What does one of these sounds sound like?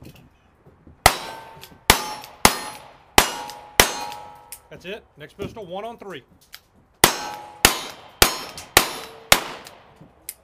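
Pistol shots ring out in rapid strings, cracking sharply and echoing outdoors.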